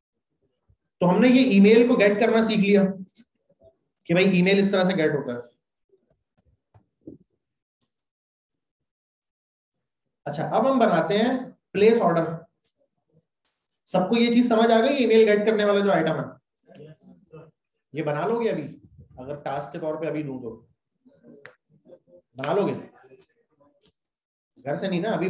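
A man talks calmly into a close microphone, in bursts with pauses.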